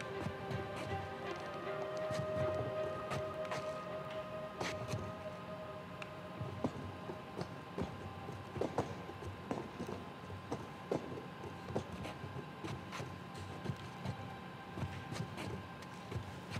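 Hands and feet knock and scrape against wooden panelling as someone climbs.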